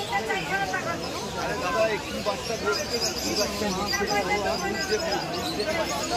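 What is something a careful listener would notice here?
A crowd of men and women talk over one another nearby, outdoors.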